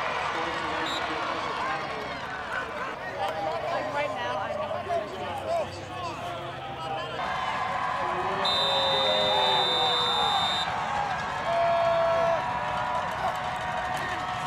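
A large outdoor crowd cheers and chatters.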